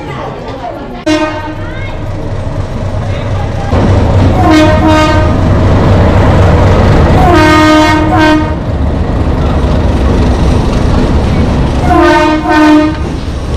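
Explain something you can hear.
A train rumbles past close by.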